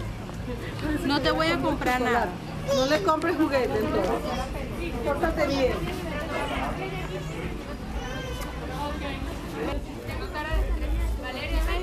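Young girls chatter and call out excitedly nearby.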